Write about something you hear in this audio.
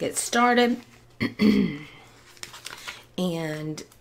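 A paper page is turned over.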